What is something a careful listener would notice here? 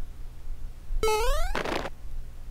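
A video game plays a short rising jingle.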